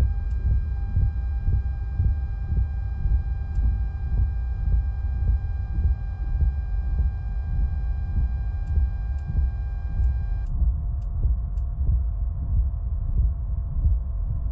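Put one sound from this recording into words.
A helicopter engine hums and its rotor thumps steadily.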